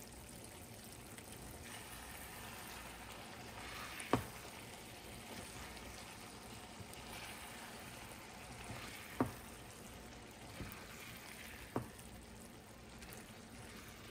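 A silicone spatula stirs and knocks vegetables in a nonstick pan.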